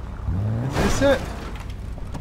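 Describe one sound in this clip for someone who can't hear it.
A car engine rumbles and then cuts off.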